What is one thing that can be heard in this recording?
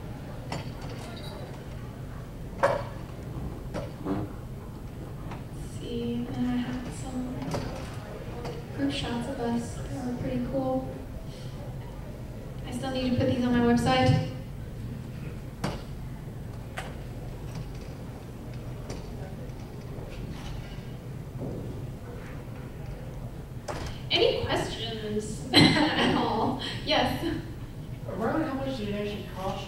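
A woman speaks into a microphone, with pauses.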